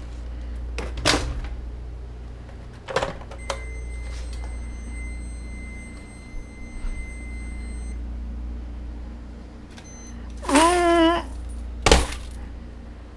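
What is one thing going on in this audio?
A hard plastic lid clicks and knocks.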